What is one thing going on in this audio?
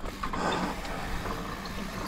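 Bike wheels rumble across wooden planks.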